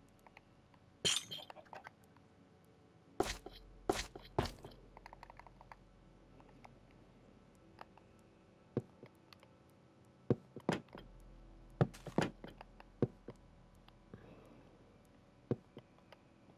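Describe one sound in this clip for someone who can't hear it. Blocks are placed with short, soft knocks, now and then.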